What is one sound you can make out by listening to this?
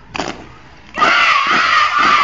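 A man shouts loud marching commands nearby.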